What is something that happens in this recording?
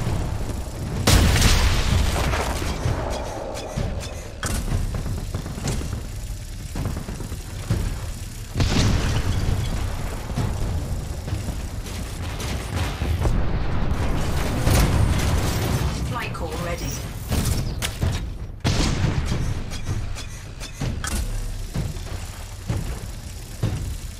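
A heavy machine gun fires in rapid bursts.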